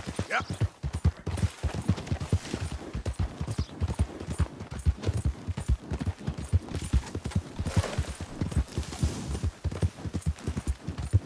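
Horse hooves thud rapidly on soft ground at a gallop.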